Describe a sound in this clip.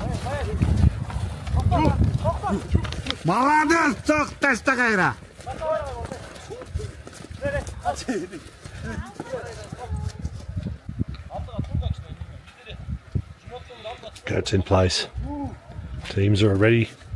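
Horses' hooves thud on snow.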